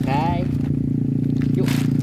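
A plastic bag rustles in a hand.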